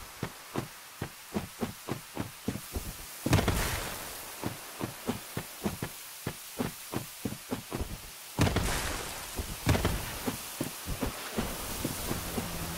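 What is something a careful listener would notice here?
Footsteps patter quickly over soft ground.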